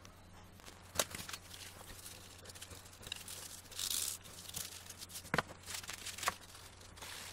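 A wrench splashes and scrapes in a plastic tray of liquid.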